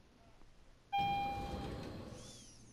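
An elevator chime rings.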